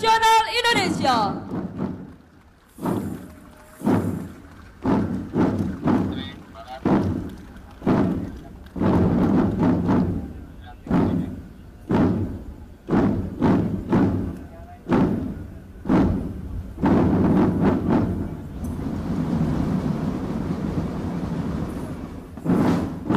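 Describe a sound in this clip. A marching band's drums beat out a steady, booming rhythm outdoors.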